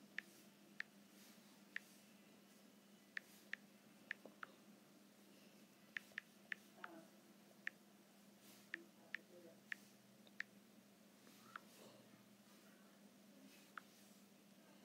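Fingertips tap on a touchscreen keyboard, giving sharp little clicks.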